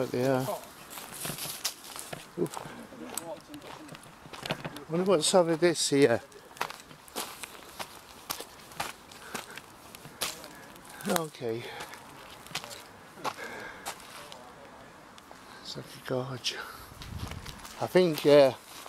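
Footsteps crunch on dry leaves and dirt.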